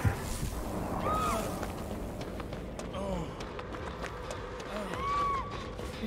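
Footsteps run through rustling grass.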